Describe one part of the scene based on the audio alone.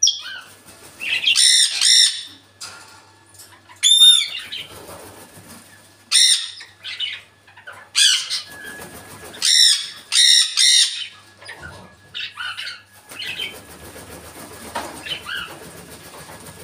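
A parrot squawks and whistles loudly in short bursts.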